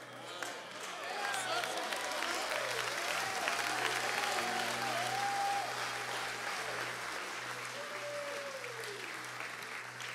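A keyboard plays sustained chords.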